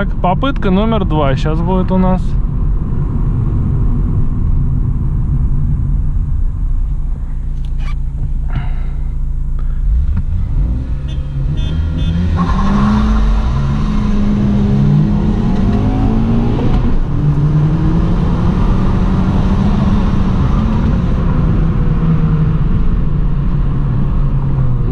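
A car engine hums steadily from inside the car, rising and falling in pitch as the car speeds up.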